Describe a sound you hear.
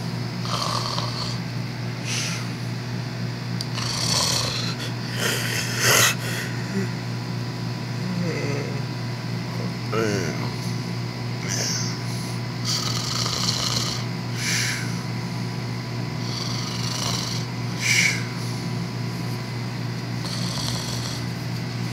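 Plush puppets rustle softly against each other as they move.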